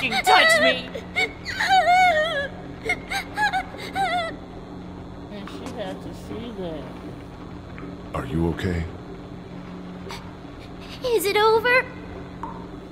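A young girl speaks softly in a high, shaky voice.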